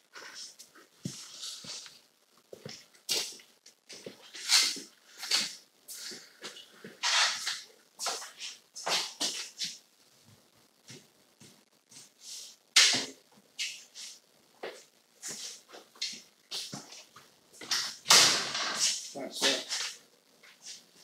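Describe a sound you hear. Knocking and scraping sounds come from work on a ceiling.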